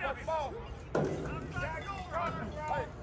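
Youth football players collide with a thud as a play starts, outdoors at a distance.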